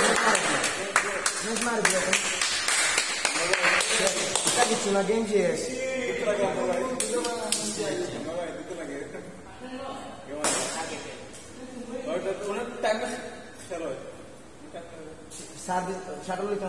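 A shuttlecock is struck sharply by a racket.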